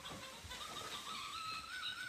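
A dog's paws patter across a wooden floor.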